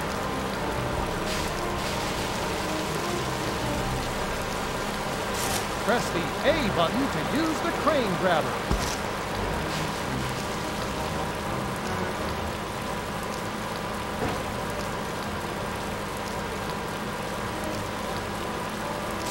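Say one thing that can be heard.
An engine hums steadily as a heavy work vehicle drives along.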